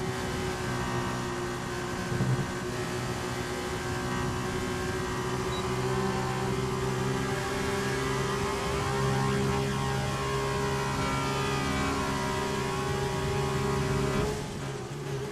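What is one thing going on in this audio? A racing car engine screams at high revs, rising steadily through the gears.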